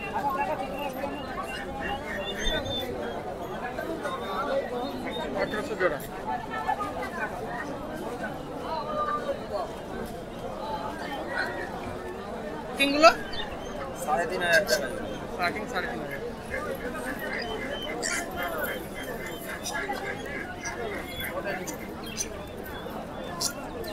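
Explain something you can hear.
Several men chatter in a busy crowd nearby.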